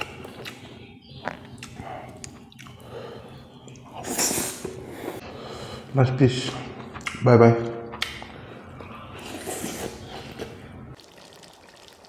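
A man chews and smacks his lips loudly, close up.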